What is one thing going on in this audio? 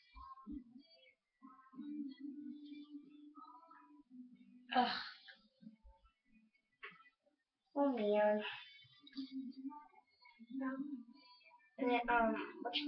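A young girl talks and hums close by.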